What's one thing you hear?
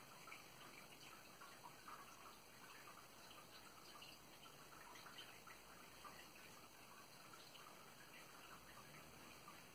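A young woman talks calmly and quietly close by.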